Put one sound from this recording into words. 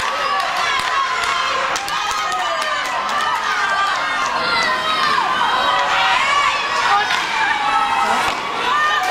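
Young children shout and call out loudly in an echoing rink.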